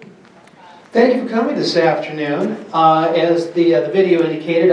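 A man speaks into a microphone over loudspeakers in a room with some echo.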